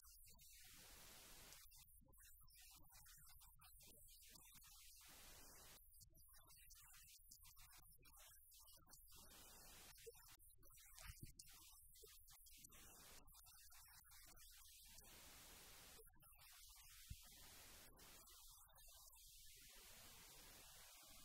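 A middle-aged woman reads aloud calmly through a microphone.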